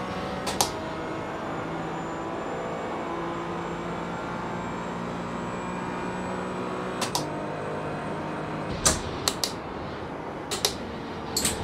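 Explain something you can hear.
A racing car engine hums steadily at high revs, shifting pitch as the car changes gear.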